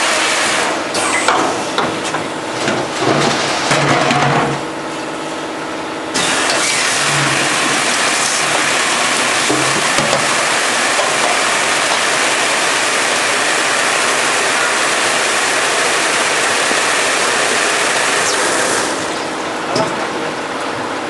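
A filling machine clanks and hums.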